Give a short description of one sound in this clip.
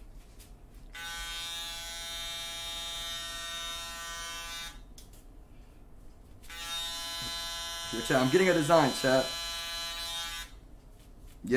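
Electric hair clippers buzz steadily.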